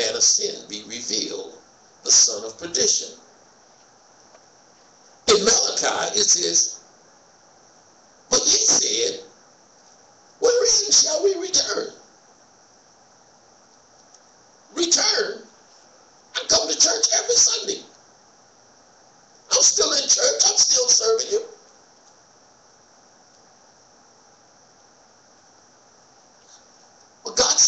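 An elderly man speaks slowly and calmly into a microphone in an echoing room, with long pauses.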